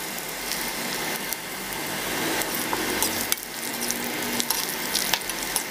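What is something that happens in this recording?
A metal ladle scrapes against an iron wok.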